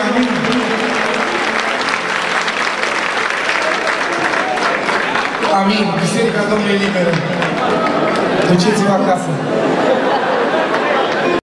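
A crowd claps along in rhythm.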